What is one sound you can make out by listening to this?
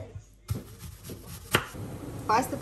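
A knife chops through an onion on a cutting board.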